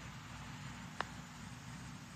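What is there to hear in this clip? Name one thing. A putter taps a golf ball once.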